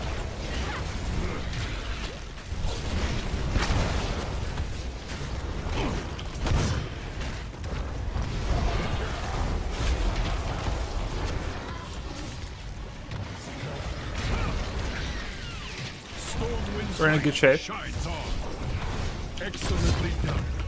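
Game spells crackle and clash in battle.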